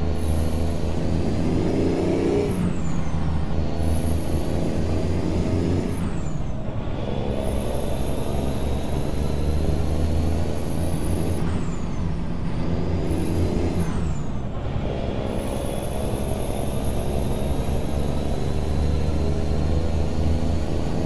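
A truck engine drones steadily, dipping and climbing again with each gear change.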